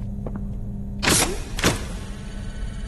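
Grabber hands shoot out on cables with a sudden whoosh.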